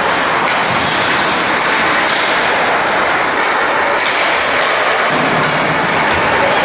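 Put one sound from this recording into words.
Hockey sticks knock against a puck.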